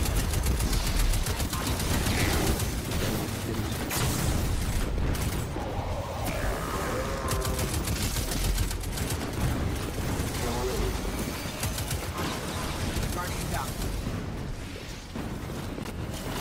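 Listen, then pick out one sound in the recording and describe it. Video game gunfire from an automatic rifle crackles in rapid bursts.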